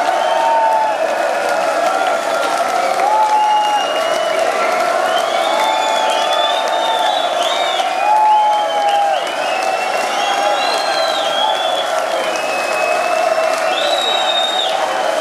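A band plays loud music through loudspeakers.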